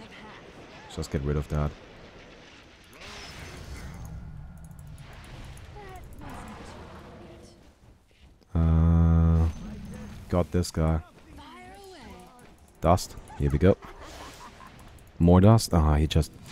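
Game spells whoosh and crackle.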